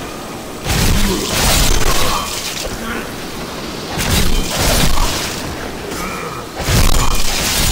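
Swords slash and strike in loud bursts.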